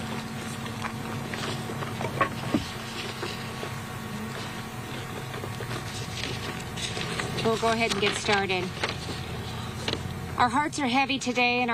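A woman speaks calmly into a microphone over loudspeakers outdoors.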